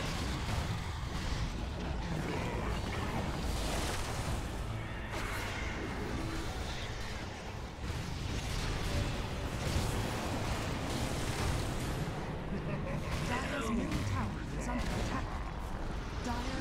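Spell blasts and fiery explosions crackle and boom in a game battle.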